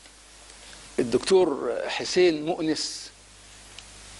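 A middle-aged man speaks calmly into a close microphone.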